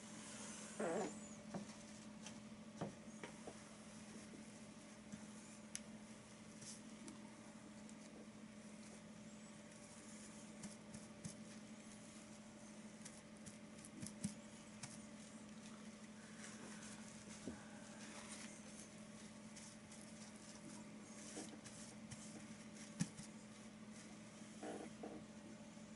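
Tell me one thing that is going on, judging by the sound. A brush dabs and scrapes softly on paper.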